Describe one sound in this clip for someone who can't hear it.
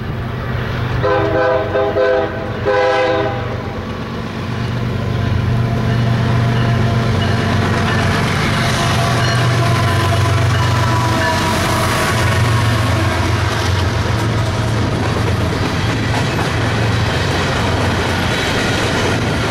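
A diesel locomotive engine rumbles closer and roars past.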